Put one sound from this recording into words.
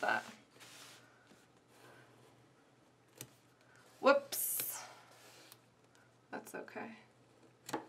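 A pen scratches briefly on paper.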